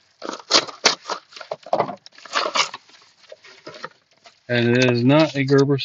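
A padded paper envelope crinkles and tears as hands pull it open.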